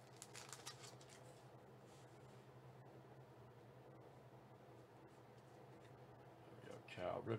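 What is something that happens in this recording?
Trading cards rustle and slide against each other as hands shuffle them.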